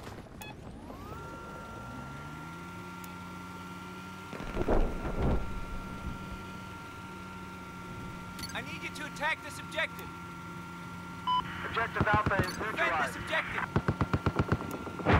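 A small remote drone hums with a steady whine.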